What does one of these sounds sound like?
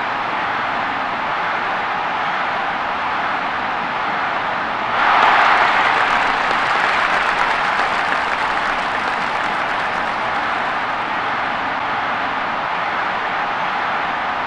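A large stadium crowd roars steadily, swelling louder for a while before settling back.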